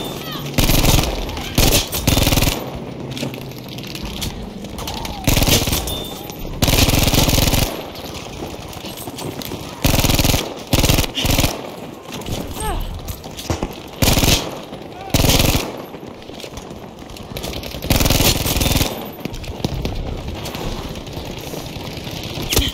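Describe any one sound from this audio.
Gunfire and explosions boom in loud bursts.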